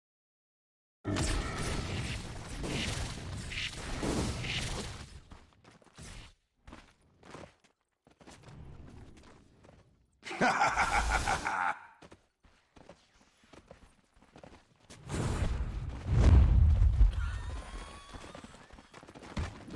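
Fantasy battle sound effects clash and whoosh in short bursts.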